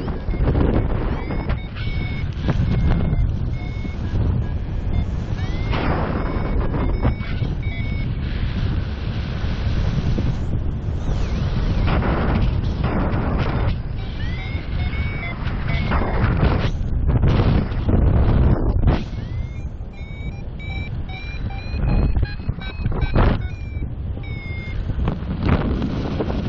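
Wind rushes and buffets loudly, as if in open air at height.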